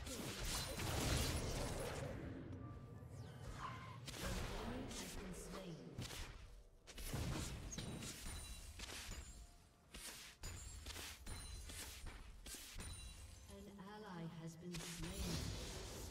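Spell effects crackle and blast during a fight.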